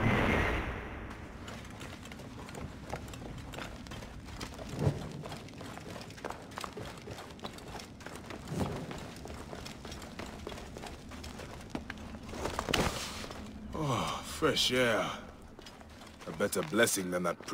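Footsteps crunch and thud on wooden planks and stone.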